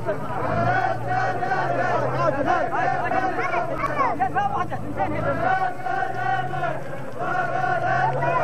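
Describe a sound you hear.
A large crowd of men chants together loudly outdoors.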